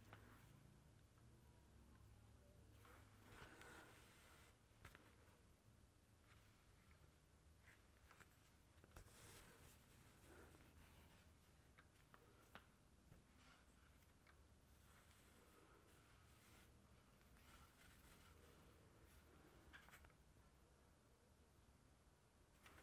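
Cotton threads rub and rustle softly as fingers weave them.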